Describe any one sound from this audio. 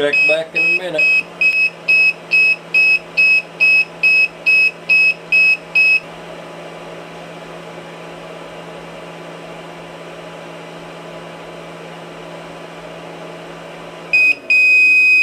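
A small heater hums steadily.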